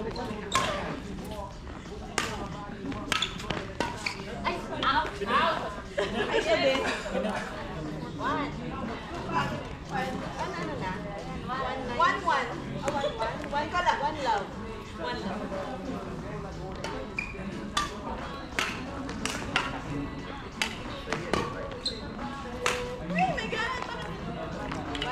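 Shoes squeak on the wooden floor.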